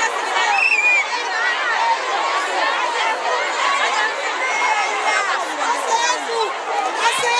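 A large crowd of men and women shouts and sings loudly outdoors, close by.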